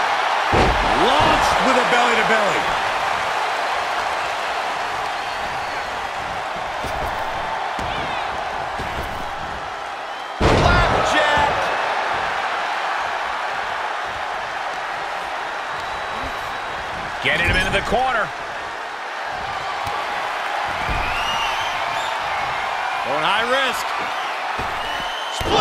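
A large crowd cheers steadily in an arena.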